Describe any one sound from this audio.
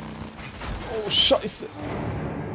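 A motorcycle crashes with a loud thud.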